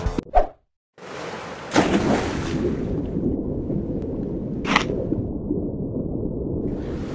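A low underwater rumble and bubbling water noise play steadily.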